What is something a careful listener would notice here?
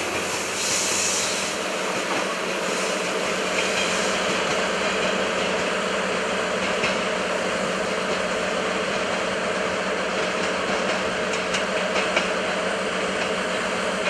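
An electric train rumbles slowly along the tracks.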